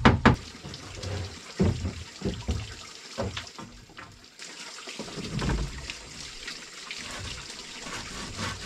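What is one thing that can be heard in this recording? A man taps and scrapes at wood with a hand tool.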